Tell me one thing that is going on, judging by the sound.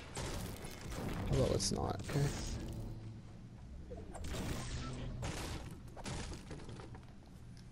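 A pickaxe chops into wood in a video game.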